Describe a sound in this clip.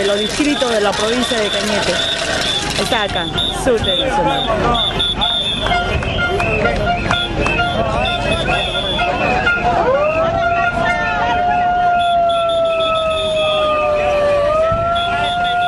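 A crowd of men and women talks and calls out outdoors.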